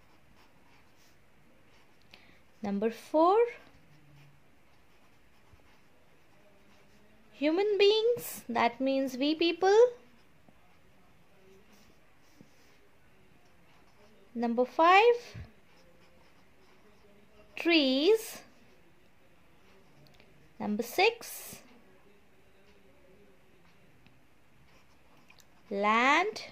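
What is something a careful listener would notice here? A pen writes on paper.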